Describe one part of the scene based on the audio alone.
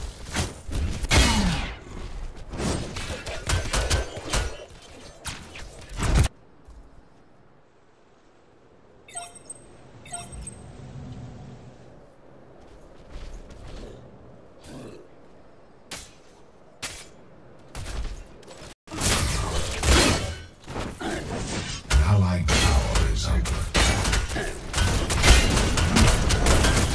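Weapons clash and blasts go off in a fast, noisy fight.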